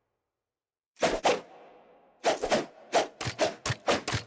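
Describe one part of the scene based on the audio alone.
A flame whooshes through the air.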